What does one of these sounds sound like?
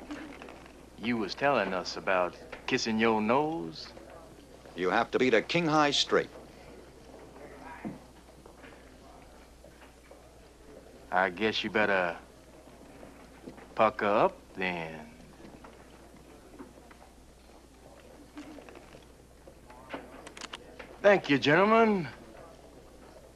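Men speak in turns, calmly and close by.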